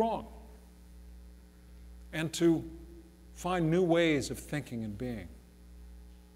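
A middle-aged man speaks expressively in short phrases in a room with some echo.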